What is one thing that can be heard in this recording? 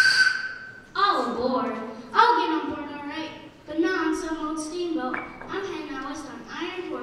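A child speaks clearly into a microphone over loudspeakers.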